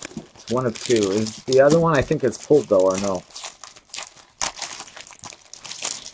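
A plastic wrapper crinkles as it is torn open.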